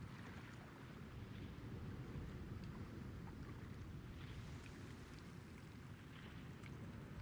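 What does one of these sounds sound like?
Water laps and washes steadily around a large ship.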